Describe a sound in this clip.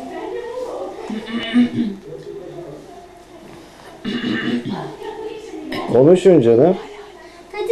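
A young girl talks and sings playfully close by.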